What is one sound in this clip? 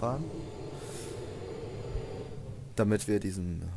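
A lift hums steadily as it moves.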